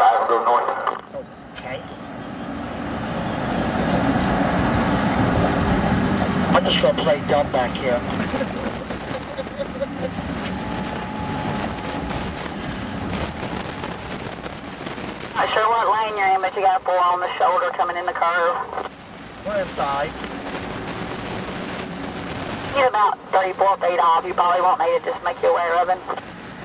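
A car drives along a highway with a steady low road rumble.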